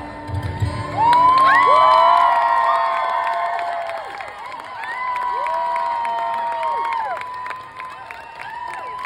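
A man whistles tunefully into a microphone.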